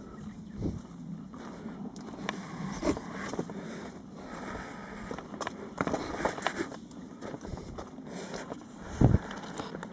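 Footsteps crunch on dry leaves and twigs along a forest path.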